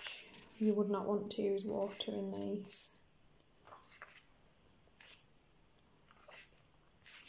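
Paper pages rustle and flip as they are turned one by one.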